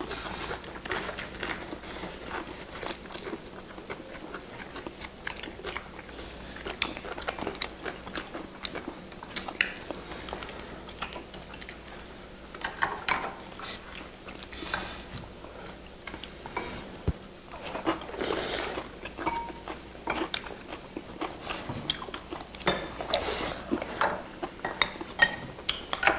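People chew and slurp food close to a microphone.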